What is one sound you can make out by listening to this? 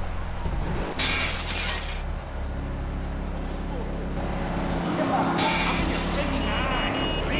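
Glass shatters loudly as a car crashes through a window.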